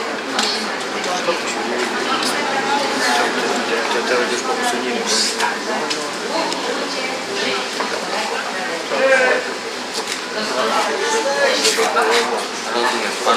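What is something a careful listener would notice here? An elderly man talks with animation, close by.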